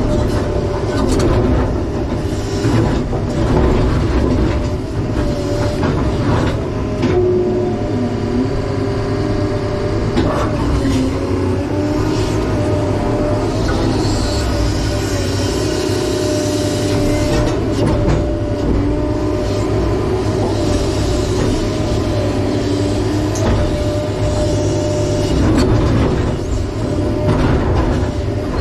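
A diesel engine rumbles steadily up close, heard from inside a cab.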